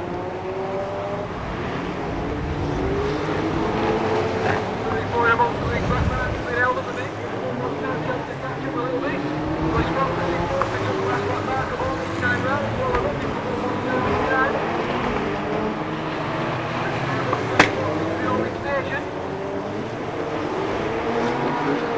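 Racing car engines roar and rev around an outdoor track.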